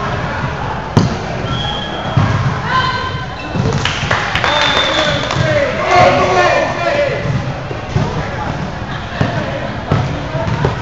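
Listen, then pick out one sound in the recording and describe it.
A volleyball is hit with sharp smacks in a large echoing gym.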